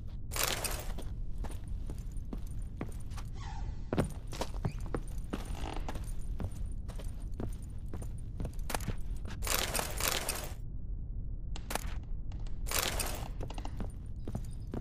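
Boots thud on wooden floorboards.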